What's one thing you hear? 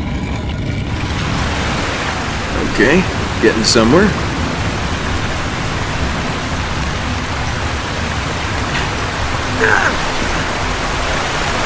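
Water pours down steadily into a pool, echoing in a stone shaft.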